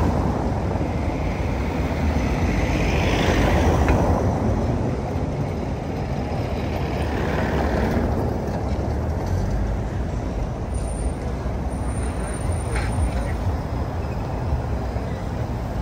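Cars drive past close by on a street.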